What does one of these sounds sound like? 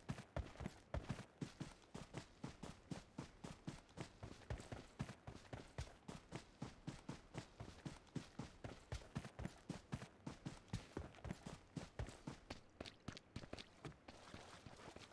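Running footsteps thud on grass.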